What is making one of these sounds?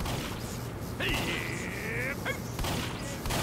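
An electric charge crackles and zaps.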